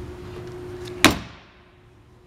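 A hinged hatch lid thumps shut.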